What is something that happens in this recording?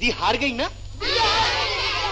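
A group of children laugh and shout together.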